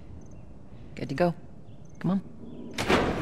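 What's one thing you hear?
A young girl calls out softly nearby.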